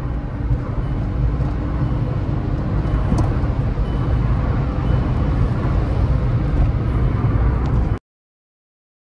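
A car engine hums steadily with road noise while driving fast.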